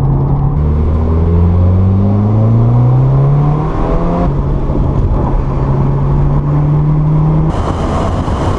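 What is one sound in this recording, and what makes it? A car engine revs up and down as it accelerates through gears.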